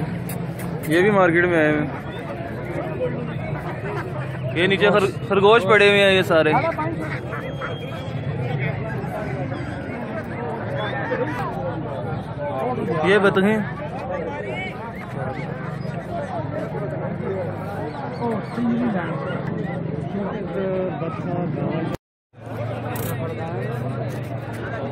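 A crowd of men and women chatters in the background outdoors.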